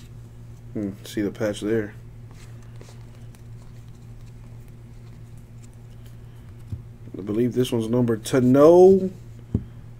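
Stiff trading cards slide and rustle against each other in someone's hands.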